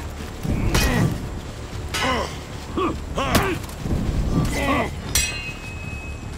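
Steel swords clash and ring sharply, again and again.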